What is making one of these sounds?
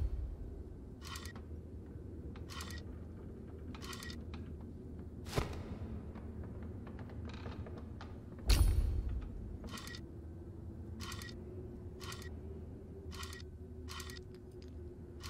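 Stone tiles click and clack as they slide into place.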